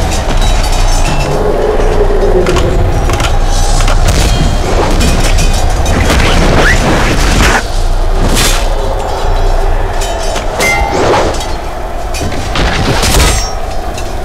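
Blows and crashes ring out in a battle.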